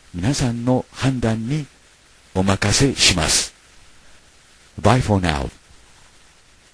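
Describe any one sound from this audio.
An older man speaks calmly and close to a microphone.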